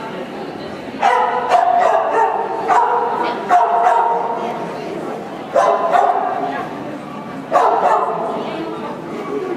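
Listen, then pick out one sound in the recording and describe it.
A woman gives commands to a dog in a large echoing hall.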